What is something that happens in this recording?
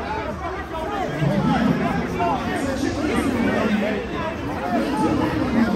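A large crowd of men and women cheers and shouts excitedly close by.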